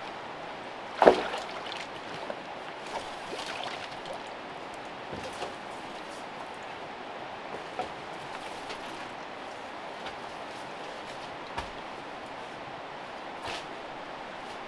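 A bamboo pole knocks against branches.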